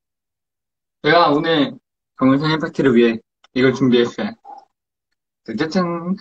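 A young man speaks with animation close to a phone microphone.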